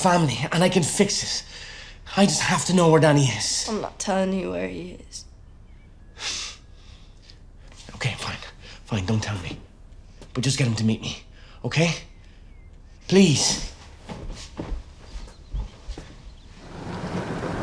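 A man speaks intensely and urgently, close by.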